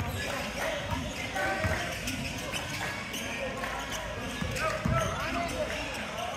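Sneakers squeak on a polished floor.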